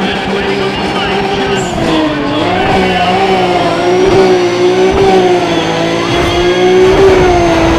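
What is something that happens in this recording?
A race car engine roars loudly and revs up through the gears.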